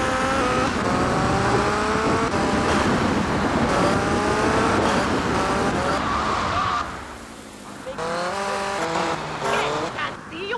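A motorbike engine revs and whines as it speeds along.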